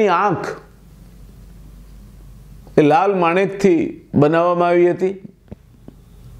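An older man speaks calmly and close to a microphone, in short phrases with pauses.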